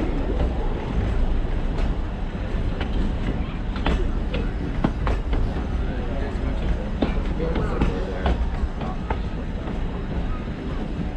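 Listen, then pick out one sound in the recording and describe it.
A train rolls slowly along the rails with a low rumble.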